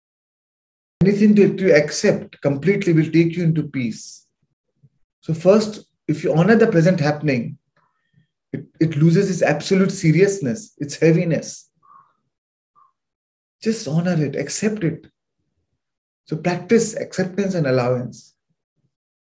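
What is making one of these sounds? A man speaks calmly through an online call, with pauses.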